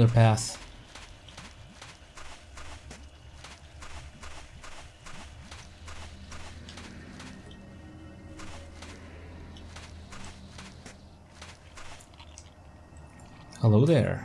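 Footsteps tread at a steady walking pace.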